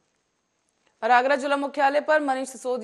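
A woman reads out the news calmly through a microphone.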